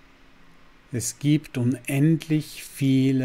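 A middle-aged man speaks calmly, close to a microphone.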